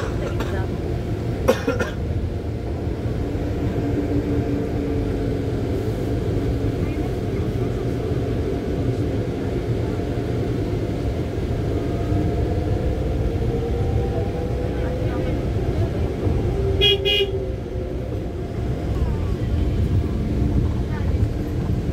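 A vehicle rumbles along a paved road, heard from inside.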